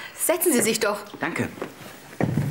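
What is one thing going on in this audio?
A woman speaks cheerfully and close by.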